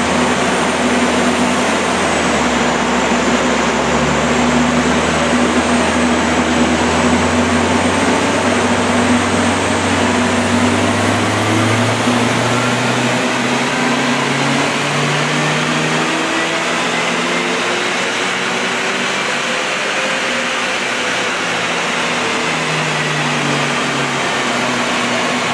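A large fan roars steadily.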